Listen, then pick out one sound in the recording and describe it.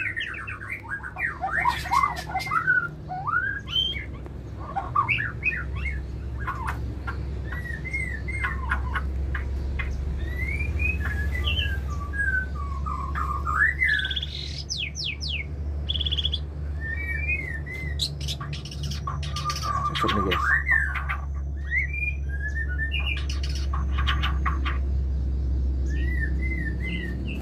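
A songbird sings close by in varied, whistling phrases and chirps.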